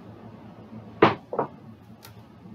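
Dice clatter and bounce across a table.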